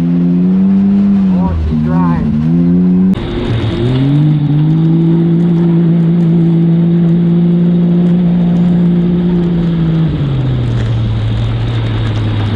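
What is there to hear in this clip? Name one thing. An off-road vehicle's engine drones steadily, shifting pitch now and then.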